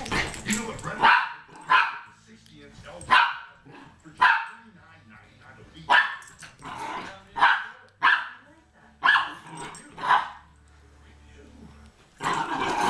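Small dogs bark sharply, again and again.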